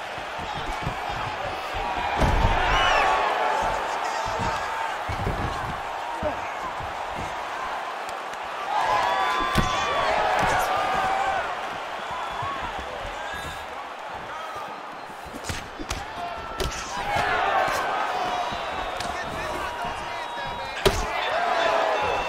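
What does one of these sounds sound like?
Punches thud as fighters strike each other.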